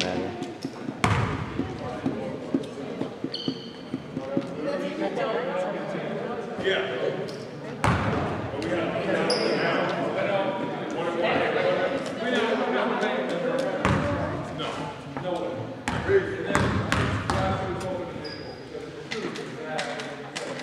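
A basketball bounces on a wooden floor in a large echoing gym.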